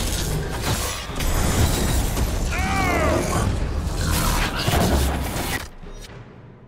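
Magic blasts crash and boom.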